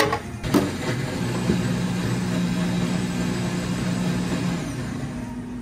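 Liquid pours steadily into a glass jar.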